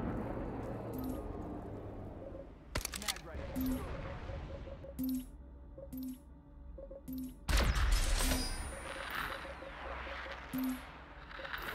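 Short soft interface beeps sound as menu options are chosen.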